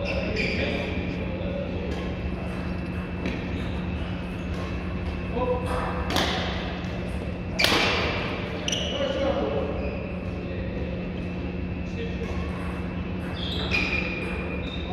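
The play echoes around a large indoor hall.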